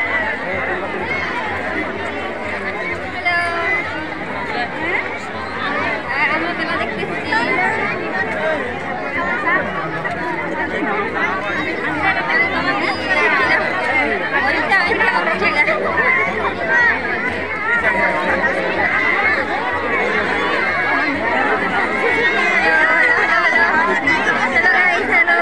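A large crowd chatters all around outdoors.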